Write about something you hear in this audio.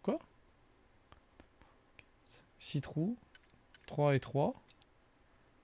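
A man speaks in short bursts close to a microphone.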